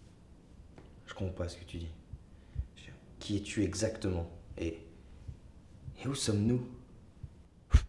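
A young man answers calmly, close by.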